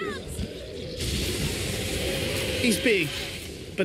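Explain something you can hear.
Crackling electric blasts whoosh and sizzle.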